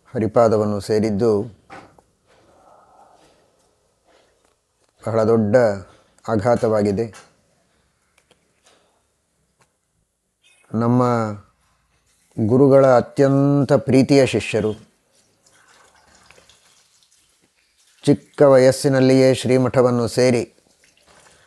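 A man speaks calmly and slowly into a close microphone, in short phrases with pauses.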